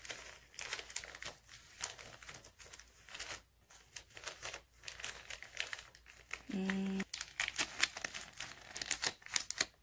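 Paper crinkles and rustles as hands fold it.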